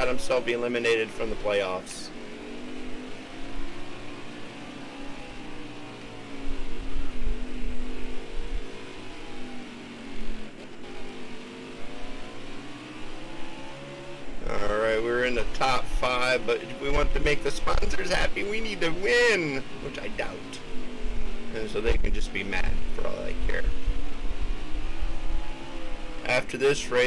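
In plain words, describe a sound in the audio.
A race car engine drones steadily, rising and falling in pitch through the turns.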